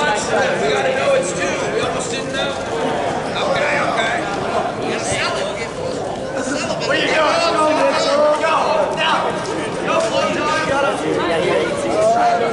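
Many young people chatter and talk at once in a large echoing hall.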